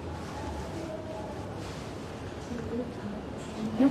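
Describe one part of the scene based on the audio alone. An elderly man talks calmly.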